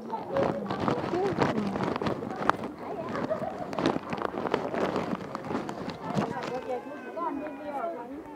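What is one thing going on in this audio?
A crowd of people chatter nearby, outdoors.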